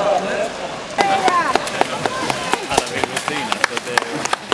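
Swimmers splash loudly through water.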